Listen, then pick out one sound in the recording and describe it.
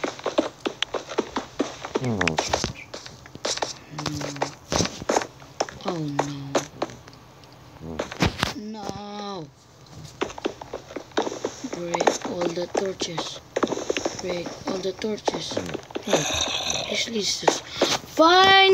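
A pickaxe knocks against stone in quick blows.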